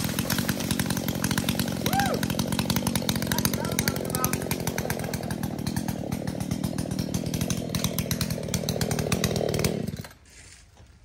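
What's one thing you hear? A chainsaw engine roars steadily close by.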